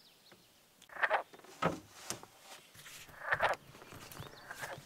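A paddle knocks against a canoe.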